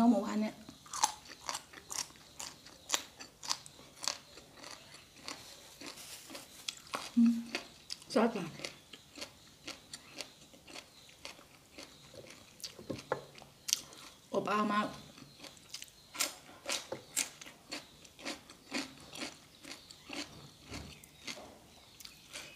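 A young woman chews crunchy food loudly and close up.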